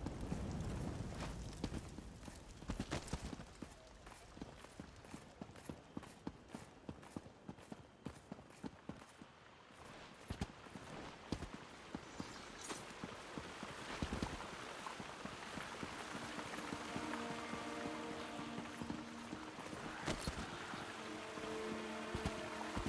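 Quick footsteps patter on stone stairs.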